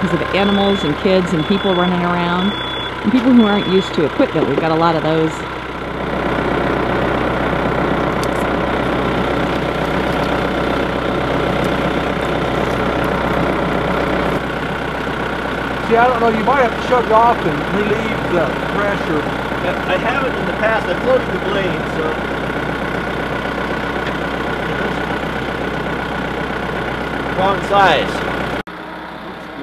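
A tractor engine idles steadily close by.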